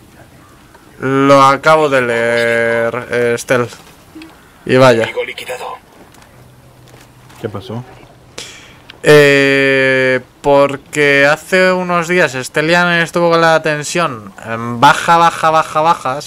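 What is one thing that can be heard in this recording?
A young man talks into a microphone with animation, stretching words in a sing-song voice.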